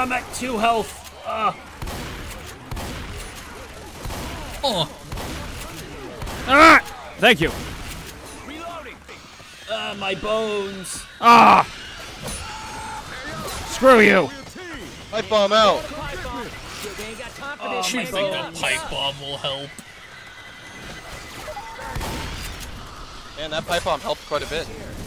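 A shotgun fires in loud, sharp blasts.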